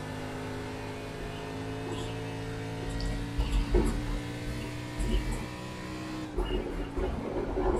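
A race car engine drones at a steady high pitch.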